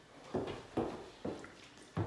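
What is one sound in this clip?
A young man gulps a drink.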